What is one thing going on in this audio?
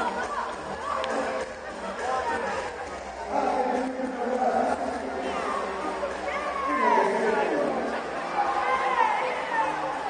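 A crowd of men and women chat in the background.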